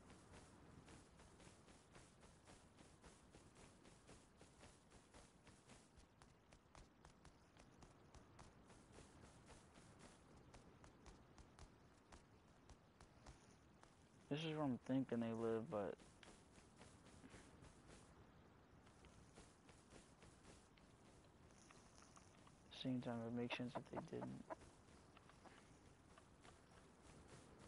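Footsteps swish and thud steadily through grass.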